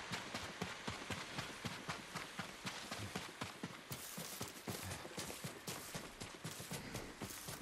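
Quick footsteps run over dirt and dry grass.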